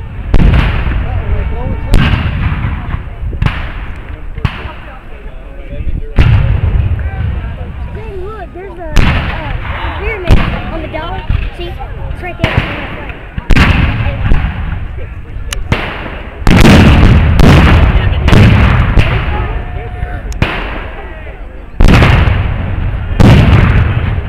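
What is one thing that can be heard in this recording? Cannons fire in loud booms that echo and roll away across open ground.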